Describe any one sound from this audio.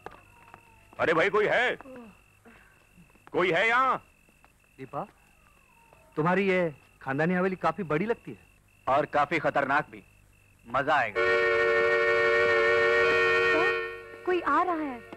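A man speaks tensely and loudly, close by.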